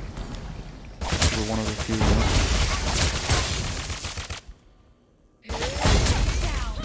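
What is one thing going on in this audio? Magic blasts and weapon blows crash in a fast game battle.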